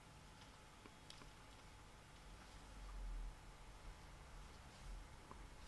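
Paper rustles and taps softly as hands handle a card.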